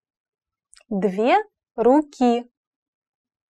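A young woman speaks slowly and clearly into a close microphone.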